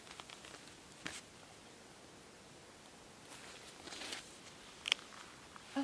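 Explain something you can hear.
A woman reads aloud calmly, close by.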